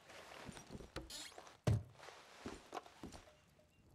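A wooden chest lid creaks open and knocks.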